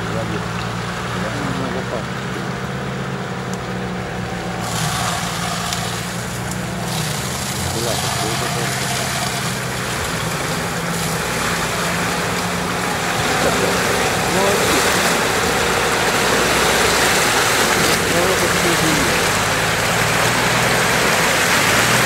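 An engine revs and labours steadily as an off-road vehicle drives through deep mud.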